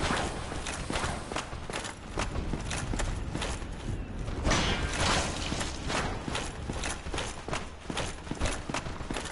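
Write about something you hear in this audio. Armored footsteps clank steadily on stone.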